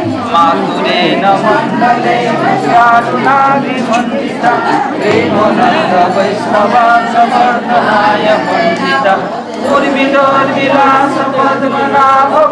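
An elderly man chants into a nearby microphone.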